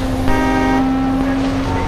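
A train horn blares briefly.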